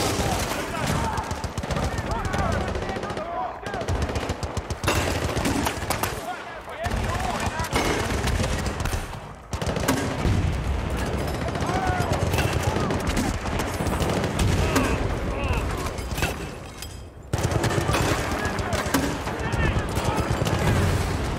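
Gunshots ring out repeatedly.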